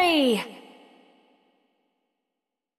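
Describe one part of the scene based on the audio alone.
A game's victory jingle sounds with a falling chime and fades away.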